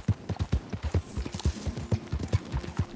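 Leafy branches rustle and swish as a horse pushes through them.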